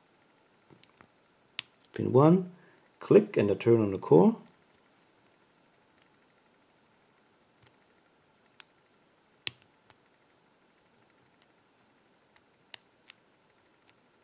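Metal picks click faintly inside a padlock.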